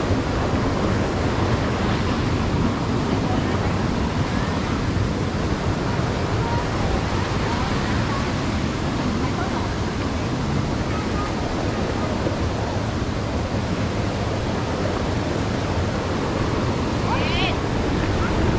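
A crowd of people chatter in the distance outdoors.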